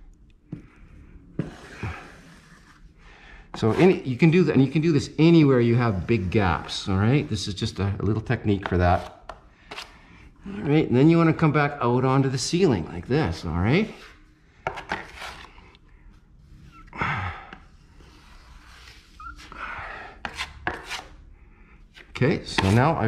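A putty knife scrapes along plaster.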